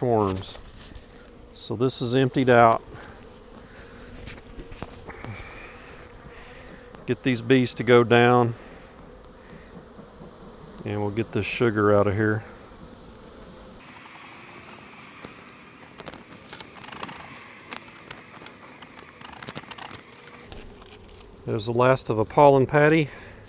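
A man speaks calmly nearby in short phrases.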